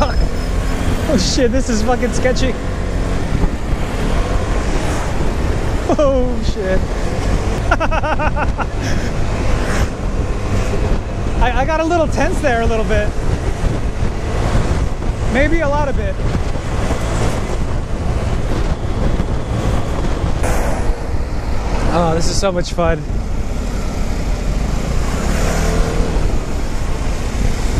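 A scooter engine hums steadily.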